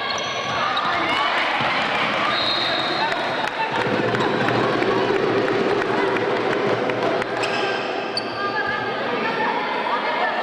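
Sneakers squeak on the hard court.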